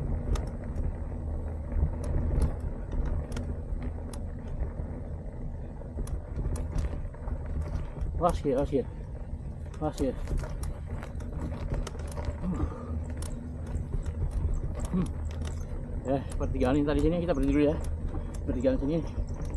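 Bicycle tyres roll and crunch over a dirt path.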